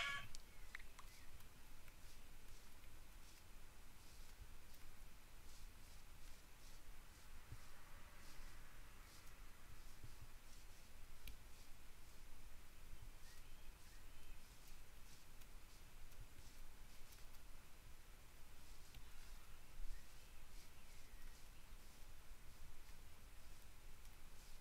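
Footsteps crunch softly through grass and leaves at a steady walking pace.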